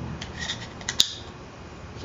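A folding knife's blade clicks into place.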